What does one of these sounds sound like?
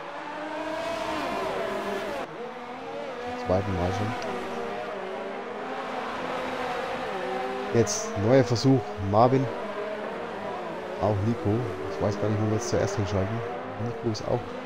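Racing car engines whine loudly, rising and falling in pitch as gears shift.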